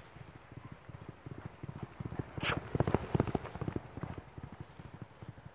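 A horse gallops past, hooves thudding on gravel.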